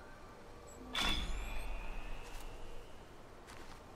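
A bright electronic tone rings out with a quick rising sweep.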